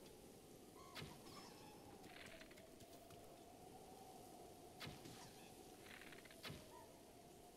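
A bow twangs sharply as arrows are shot.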